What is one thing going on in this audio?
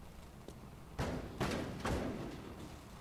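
A punch lands with a dull thud.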